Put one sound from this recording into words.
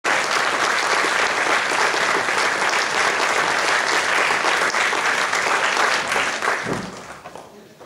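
An audience applauds loudly in a large hall and then dies down.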